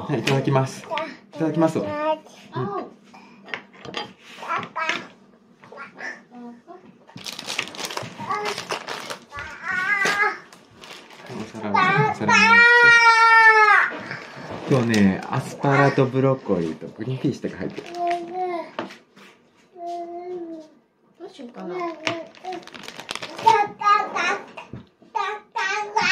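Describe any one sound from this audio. A toddler girl babbles and talks in a high voice close by.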